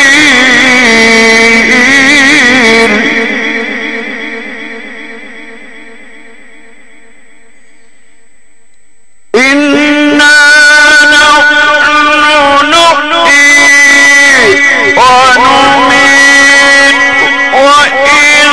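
An elderly man chants a long, wavering melody through a microphone, pausing once as the sound slowly dies away.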